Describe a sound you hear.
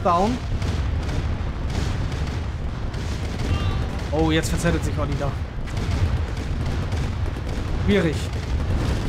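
Tank cannons fire in rapid bursts.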